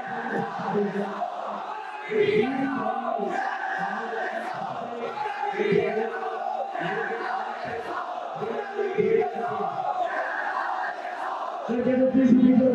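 A young man speaks steadily into a microphone, heard through a loudspeaker in a large echoing hall.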